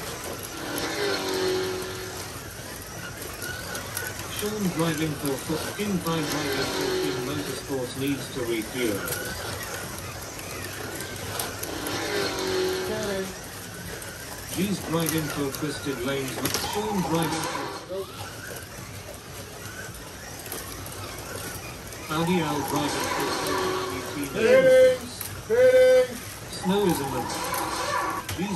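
Small electric toy racing cars whir as they speed around a track.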